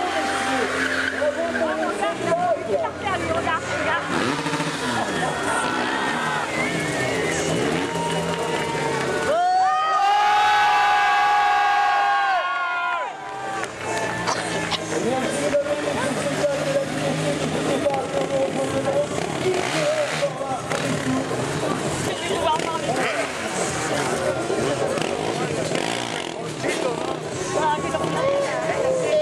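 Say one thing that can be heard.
Motorcycle engines rev loudly and roar up and down.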